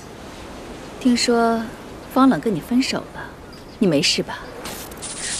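A young woman speaks calmly and coolly, close by.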